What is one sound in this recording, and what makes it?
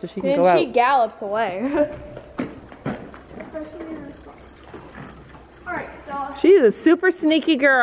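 A horse's hooves thud softly on loose dirt and straw.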